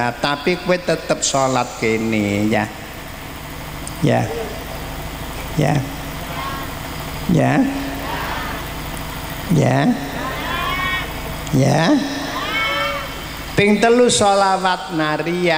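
An elderly man speaks into a microphone in a slow, drawn-out chanting voice.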